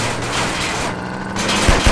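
Metal scrapes harshly against the ground.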